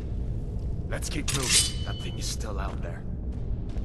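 A sword is drawn from its sheath with a metallic ring.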